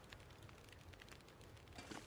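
A fire crackles in a wood stove.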